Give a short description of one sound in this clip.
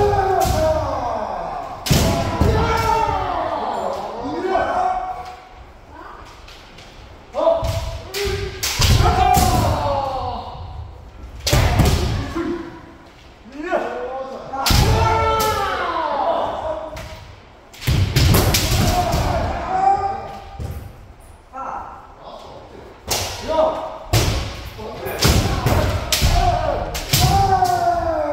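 Bamboo swords clack and strike sharply.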